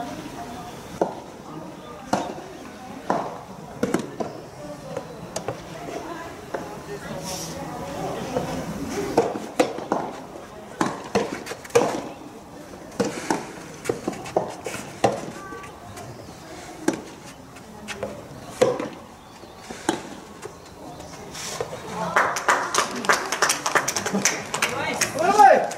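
Tennis rackets hit a soft ball back and forth outdoors.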